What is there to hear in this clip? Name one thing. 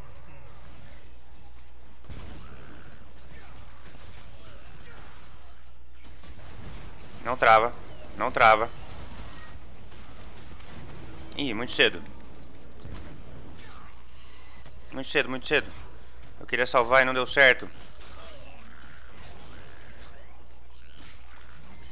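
Magic blasts, zaps and clashes of a fantasy battle ring out.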